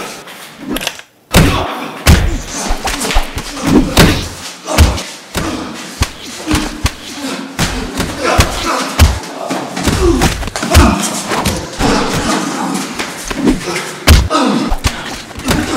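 Men grunt and pant as they fight at close range.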